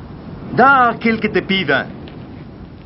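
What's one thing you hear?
A woman calls out nearby.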